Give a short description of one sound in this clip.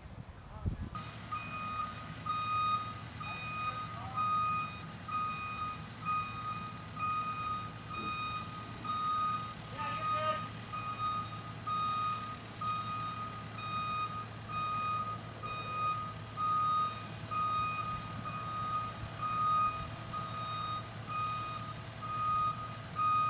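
A reversing alarm beeps steadily and repeatedly.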